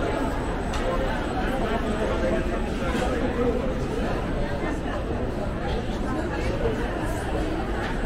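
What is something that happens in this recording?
A crowd of men and women chatters steadily all around.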